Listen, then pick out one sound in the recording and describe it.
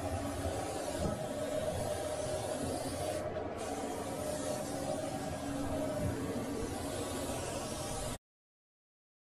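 An aerosol spray can hisses.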